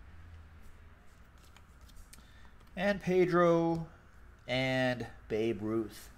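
Trading cards rustle and flick as they are handled.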